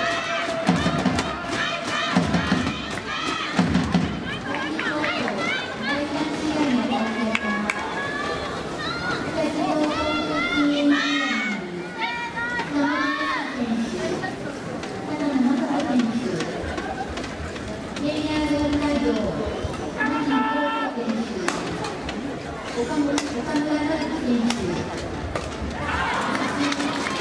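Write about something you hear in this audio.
A shuttlecock is struck sharply with rackets.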